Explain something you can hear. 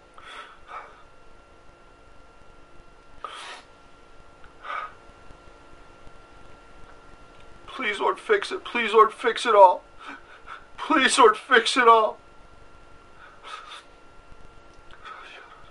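A man sniffles and breathes heavily while crying.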